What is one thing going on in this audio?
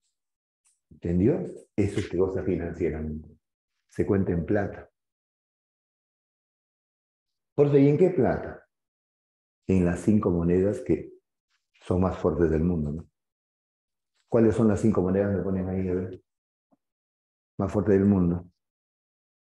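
A middle-aged man speaks with animation in short bursts, close to a microphone.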